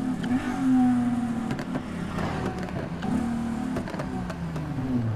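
Exhaust pops and crackles from a sports car.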